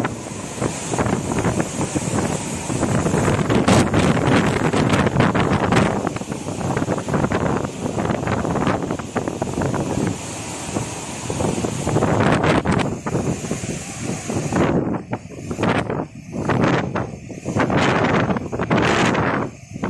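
Strong wind gusts roar through palm trees.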